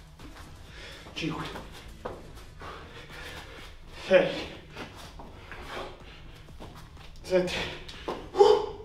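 A young man breathes hard and grunts with effort.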